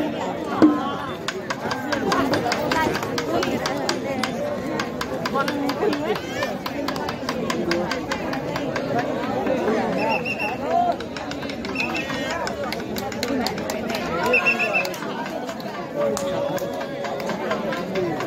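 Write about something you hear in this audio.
A crowd of men and women chatters and calls out loudly outdoors.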